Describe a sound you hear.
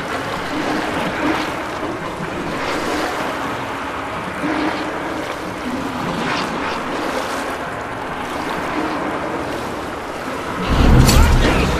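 A boat motor rumbles steadily while moving over water.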